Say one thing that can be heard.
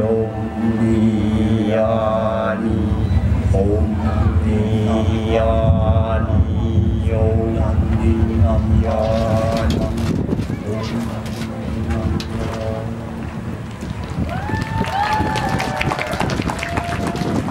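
Music plays loudly through loudspeakers.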